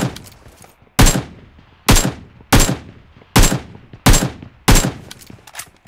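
Rifle shots ring out one by one, loud and sharp.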